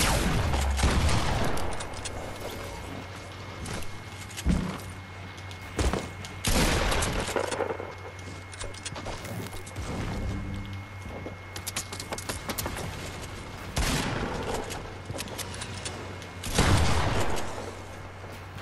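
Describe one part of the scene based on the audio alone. Rifle shots ring out in bursts.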